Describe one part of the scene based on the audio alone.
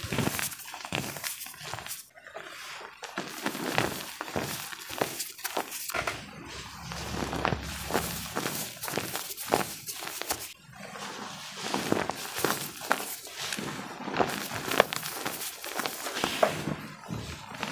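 Fingers squish and crunch through soft powder up close.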